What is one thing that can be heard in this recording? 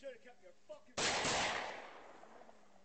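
A gunshot cracks loudly nearby and echoes outdoors.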